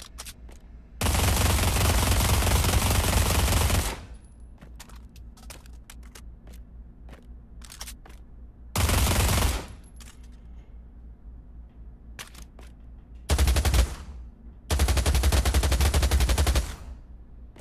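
An automatic gun fires in loud, rapid bursts.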